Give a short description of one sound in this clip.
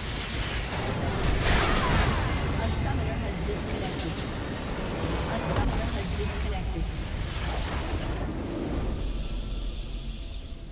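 A structure blows up with a deep, rumbling explosion.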